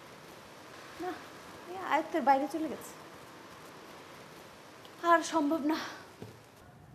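A woman speaks anxiously close by.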